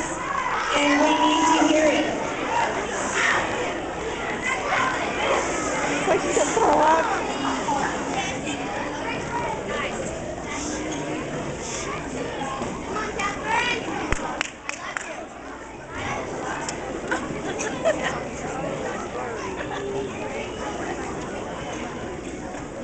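A young girl speaks into a microphone, heard through a loudspeaker in a large room.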